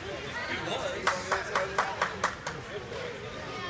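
Hockey sticks clack against the ice and puck.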